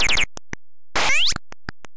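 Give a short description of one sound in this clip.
A falling electronic tone sweeps down.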